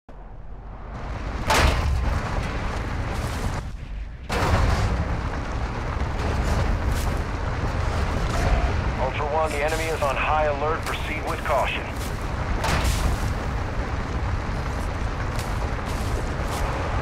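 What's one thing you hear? Tyres rumble and crunch over dirt and gravel.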